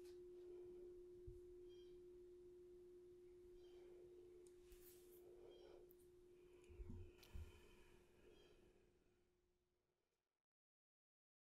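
A woman speaks softly and calmly through a computer microphone.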